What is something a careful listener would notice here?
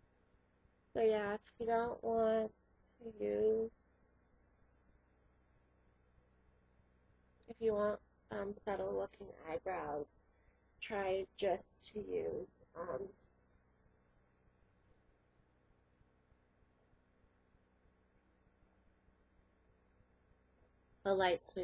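A young woman talks close to the microphone in short bursts.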